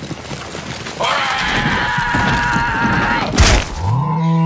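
A cartoon creature screams in a high, squeaky voice.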